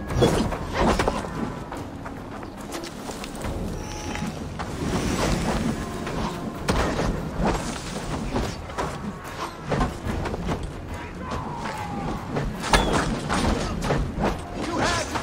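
Footsteps run over dry ground and brush through bushes.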